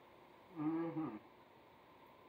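A woman speaks briefly and calmly close by.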